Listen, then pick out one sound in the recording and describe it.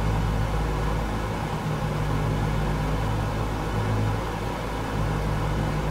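Aircraft engines drone steadily with a low hum.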